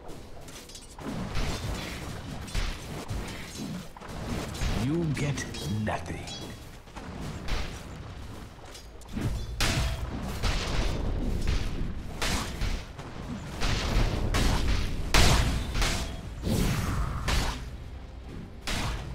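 Blows and impacts clash repeatedly in a game fight.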